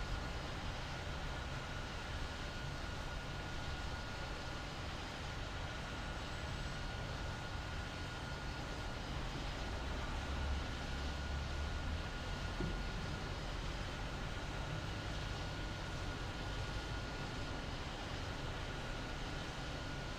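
A jet airliner's engines hum steadily as it taxis.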